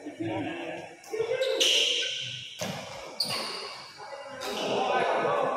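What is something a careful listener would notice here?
A shuttlecock is struck sharply by rackets.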